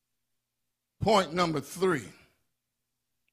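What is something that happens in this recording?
An older man speaks with emphasis into a microphone.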